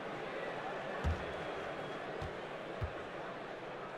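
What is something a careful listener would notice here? A basketball bounces on a wooden floor a few times.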